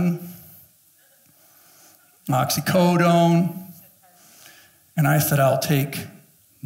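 A middle-aged man speaks with animation through a microphone in a large room, with pauses between phrases.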